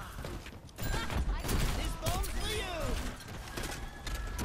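A video game gun fires in rapid bursts.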